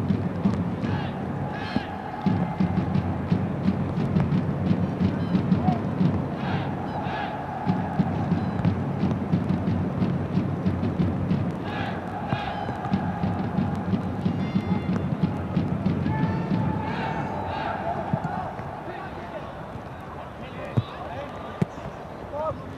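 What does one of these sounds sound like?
A large crowd cheers and chants in an open stadium.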